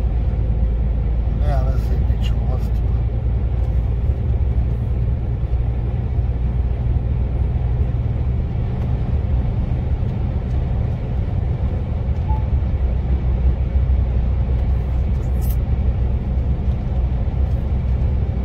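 A heavy vehicle's engine rumbles steadily from inside the cab.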